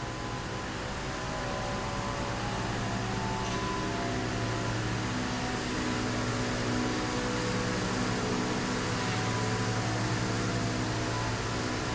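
A large truck engine hums steadily nearby.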